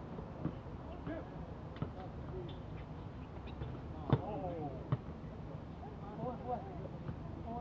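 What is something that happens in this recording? Young men call out to each other during a game, heard from a distance.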